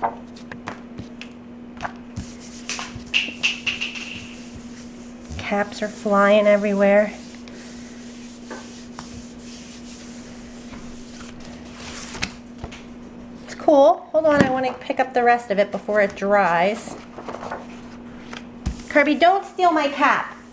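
Hands rub softly across a sheet of paper.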